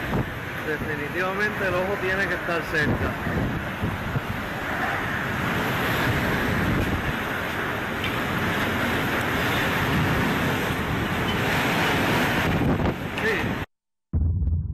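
Rain lashes down outdoors.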